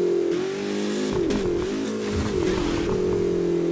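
A car crashes with loud metallic bangs and crunches.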